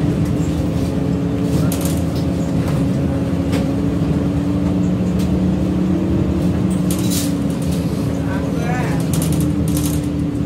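The bus body rattles and clicks as it rolls along.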